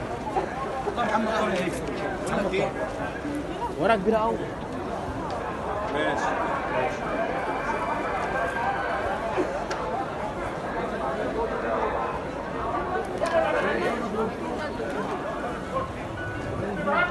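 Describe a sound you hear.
A crowd of men and women chatter in a large hall.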